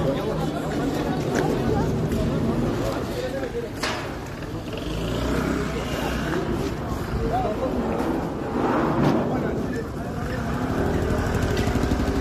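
A crowd of men and women talks and shouts with agitation outdoors.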